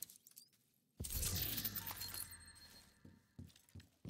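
A loud game sound bursts and rings out as an item is picked up.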